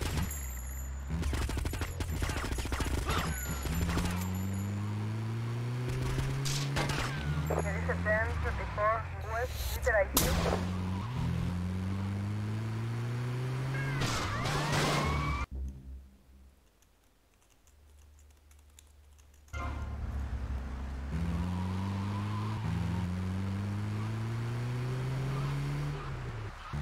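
A van engine revs up and shifts through gears as it drives.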